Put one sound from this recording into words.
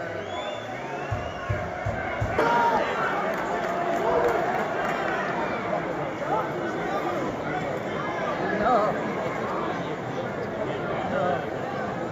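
A large stadium crowd chants and sings outdoors.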